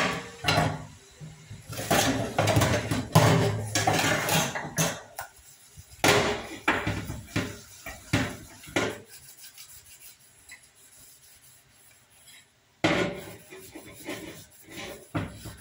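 Metal pots clank and scrape against each other in a sink.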